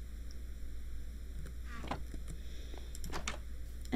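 A wooden chest thumps shut.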